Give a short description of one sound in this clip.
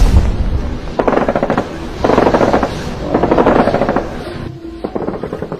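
Large wings flap.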